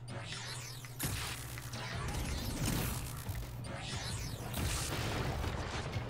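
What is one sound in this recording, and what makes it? A crackling energy blast roars and sizzles.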